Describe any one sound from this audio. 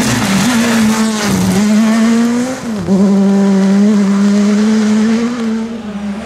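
Tyres splash through mud and spray gravel.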